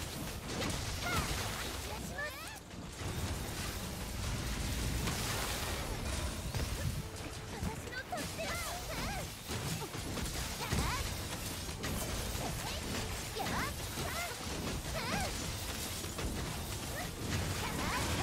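Fiery explosions burst with heavy booms.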